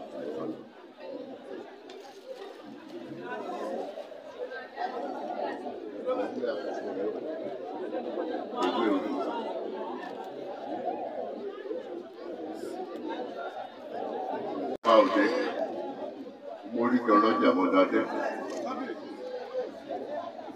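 An elderly man speaks into a microphone in a slow, chanting voice.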